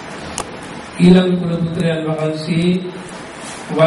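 A man chants loudly in a deep voice through a microphone.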